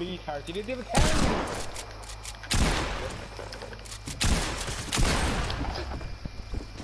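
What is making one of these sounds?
Gunshots crack in short, loud bursts.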